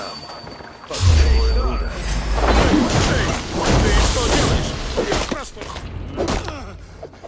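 Heavy blows thud and clash in a fight.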